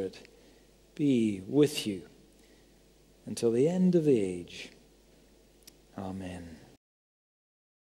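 A middle-aged man speaks through a microphone in slow, emphatic phrases.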